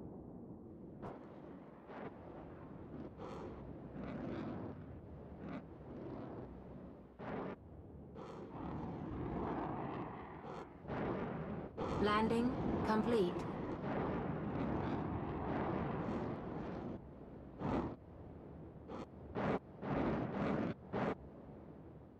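A spaceship engine rumbles and roars, with short bursts of thrust.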